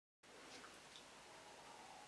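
A young woman sips a drink close by.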